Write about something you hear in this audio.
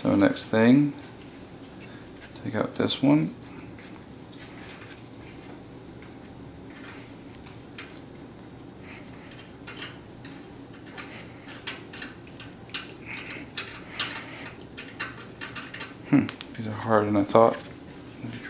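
Metal parts clink and rattle as they are handled.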